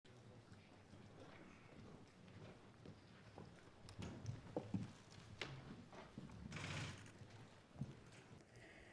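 High heels click on a hard floor in a large echoing room.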